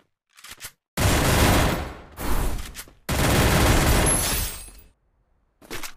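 Loud bursts of gunfire ring out.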